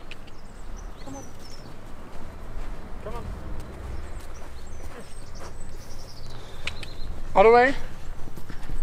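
A young man speaks calmly to a pony outdoors.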